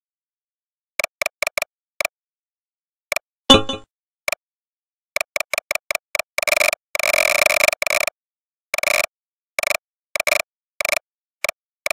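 Short electronic beeps sound in quick bursts.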